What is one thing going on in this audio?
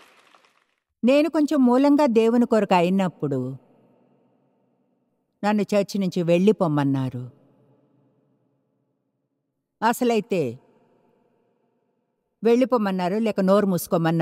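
An older woman speaks with animation into a microphone.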